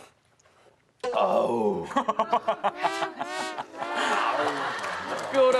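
A group of young men and women laugh loudly.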